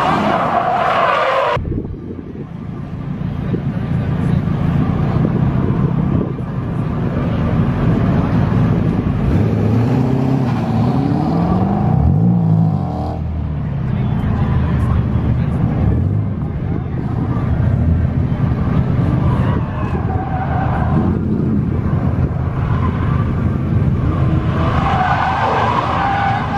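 Tyres squeal on the pavement.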